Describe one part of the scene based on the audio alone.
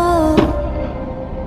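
A skateboard clacks against the ground.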